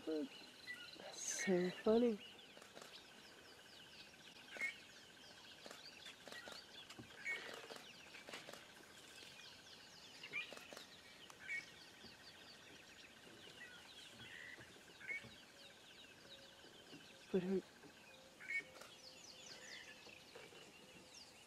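A young elephant rustles through tall grass.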